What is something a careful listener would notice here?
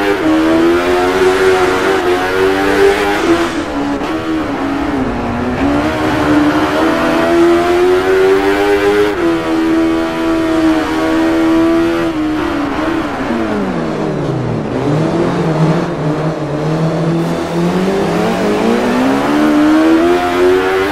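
A motorcycle engine roars and revs up and down as it speeds along.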